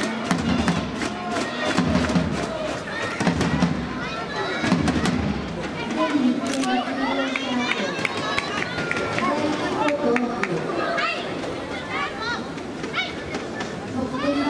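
Rackets strike a shuttlecock in quick rallies.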